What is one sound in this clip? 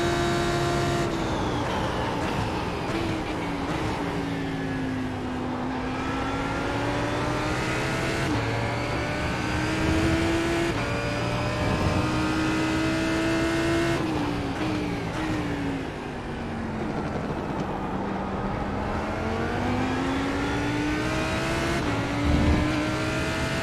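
A race car engine revs up and down through gear shifts.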